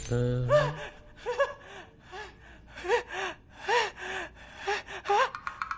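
A man whimpers in short, high cries.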